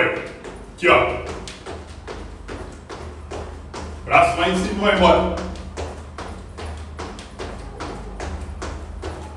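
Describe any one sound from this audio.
Sneakers thump on a tiled floor as a young man jumps.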